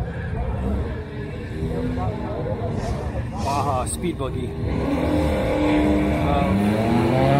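Race car engines idle with a deep rumble and rev louder.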